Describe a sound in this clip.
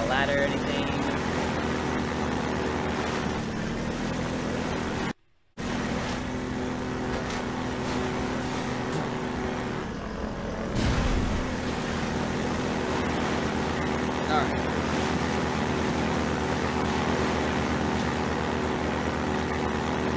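A boat engine hums steadily as it speeds across water.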